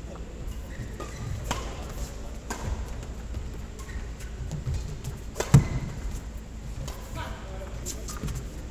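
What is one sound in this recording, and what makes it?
Badminton rackets strike a shuttlecock.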